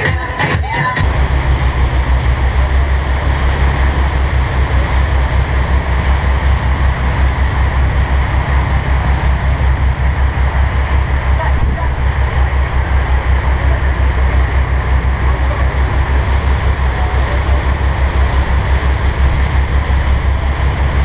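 Water rushes and splashes in a boat's wake.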